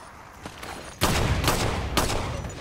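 A pistol fires a few sharp shots.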